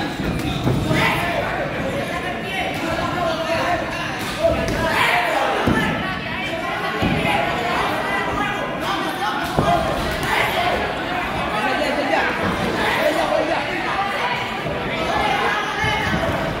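A crowd of men and women chatters and shouts nearby.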